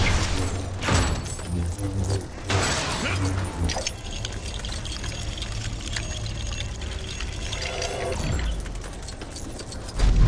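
A lightsaber hums and swooshes.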